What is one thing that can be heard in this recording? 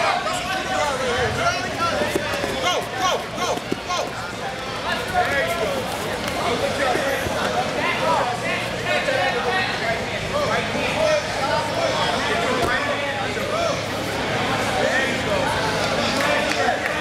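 A crowd of men and women shout and cheer throughout, echoing in a large hall.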